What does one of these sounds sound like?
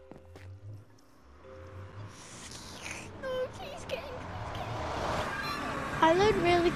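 A magical portal hums and swells with a rising whoosh.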